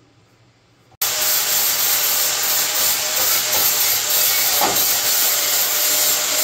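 An angle grinder whines and grinds loudly against metal.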